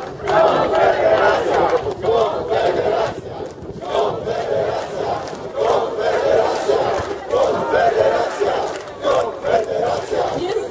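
A large crowd chants loudly in rhythm outdoors.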